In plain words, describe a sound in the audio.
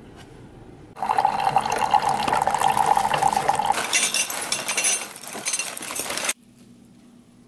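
A coffee machine hisses and gurgles as coffee pours into a mug.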